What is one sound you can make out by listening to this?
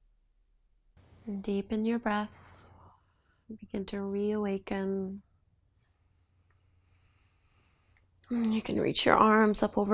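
A woman speaks calmly and slowly into a close microphone.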